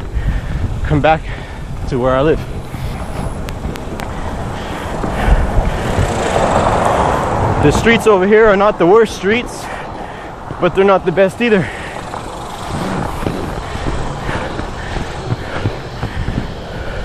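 Inline skate wheels roll and rumble over pavement.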